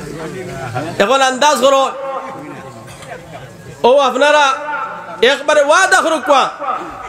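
A middle-aged man chants in a drawn-out singing voice through a loudspeaker.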